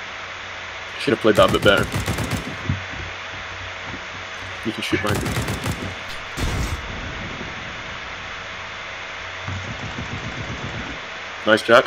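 Rifle shots fire in short, quick bursts.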